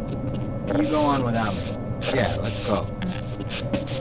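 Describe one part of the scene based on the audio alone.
A man speaks briefly in a flat, slightly processed voice.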